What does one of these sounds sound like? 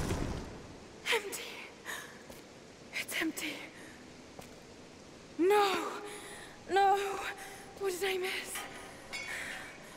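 A young woman speaks in distress.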